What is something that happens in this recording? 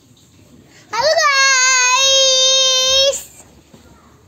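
A young child shouts a long, loud, drawn-out note close by.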